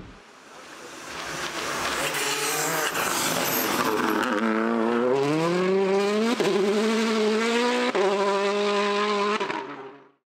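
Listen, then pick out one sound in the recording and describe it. A rally car engine revs hard and rises in pitch.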